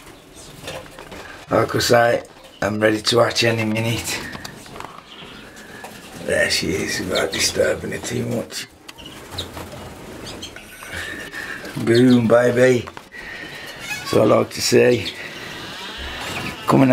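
A small bird chirps nearby.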